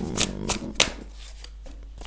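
Playing cards shuffle and slap softly together.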